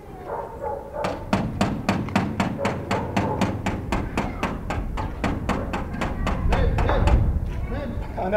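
A man knocks rapidly on a metal gate.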